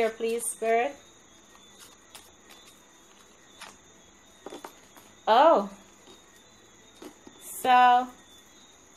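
Playing cards rustle and snap as they are shuffled by hand.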